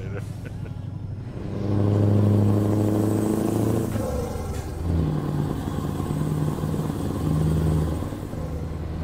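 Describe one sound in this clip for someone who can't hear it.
A truck engine hums low and steady, rising and falling in pitch as it revs.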